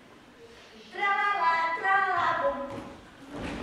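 A young girl speaks with animation, high-pitched and clear.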